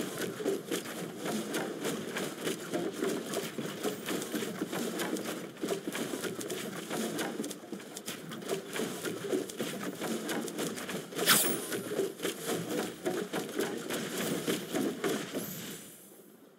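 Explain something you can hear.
Building pieces snap into place in quick, clattering clicks.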